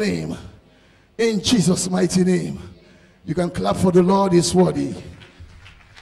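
A man preaches loudly and with fervour into a microphone, his voice echoing in a large hall.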